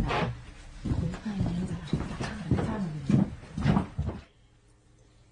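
A middle-aged woman speaks with animation, close by.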